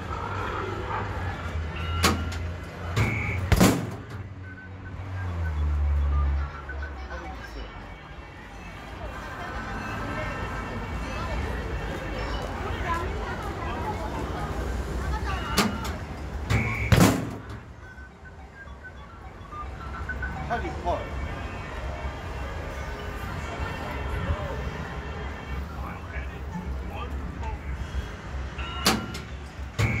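An arcade machine plays electronic beeps and jingles.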